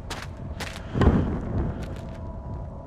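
A sudden magical blast booms and rumbles.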